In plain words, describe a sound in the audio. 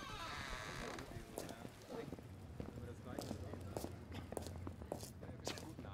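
Footsteps echo in a large hall.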